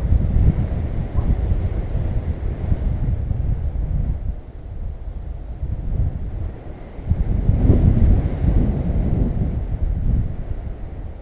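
Wind rushes past in flight and buffets a microphone in deep gusts.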